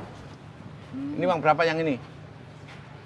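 A man speaks loudly with animation.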